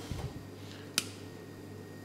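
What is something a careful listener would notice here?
A spoon clinks against a pan.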